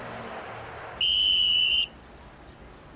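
A traffic officer blows a shrill whistle.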